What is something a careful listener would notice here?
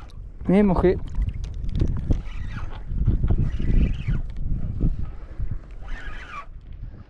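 Wind blows and rumbles outdoors over open water.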